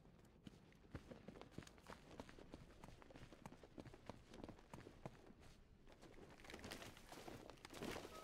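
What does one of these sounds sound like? Footsteps run quickly over a hard floor.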